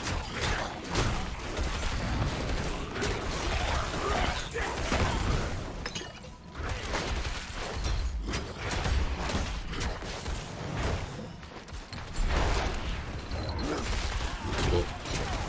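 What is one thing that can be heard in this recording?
Spells and weapon blows hit monsters with bursts of crackling impacts.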